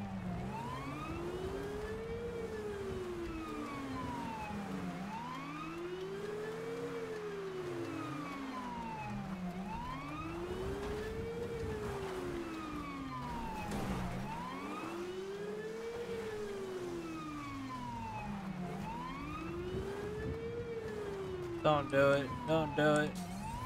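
A car engine roars over a rough dirt road.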